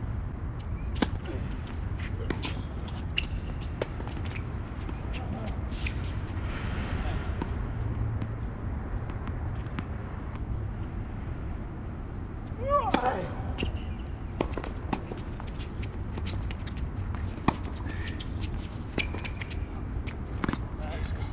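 Tennis rackets strike a ball with sharp pops.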